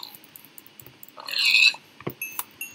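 A pig squeals when struck.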